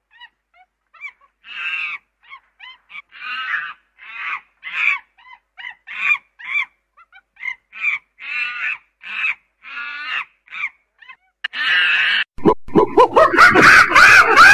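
A chimpanzee pant-hoots in rising calls that build to loud screams.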